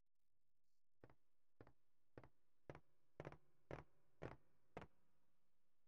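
Footsteps thud on a wooden floor at an even pace.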